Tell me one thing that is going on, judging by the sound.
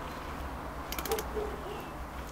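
A cordless drill whirs briefly, driving a screw.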